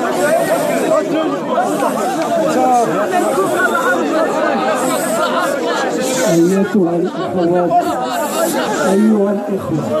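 A crowd chants and shouts loudly outdoors.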